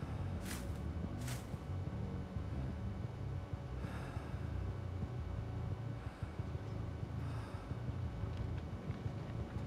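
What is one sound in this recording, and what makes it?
Footsteps crunch slowly over dry ground.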